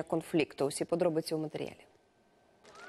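A young woman speaks calmly and clearly into a microphone.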